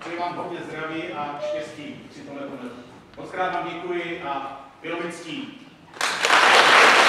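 A man speaks calmly through a microphone in a hall.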